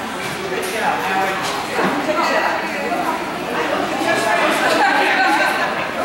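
Adult and elderly women talk nearby in a large echoing hall.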